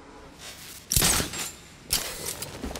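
A grappling line fires with a sharp whoosh.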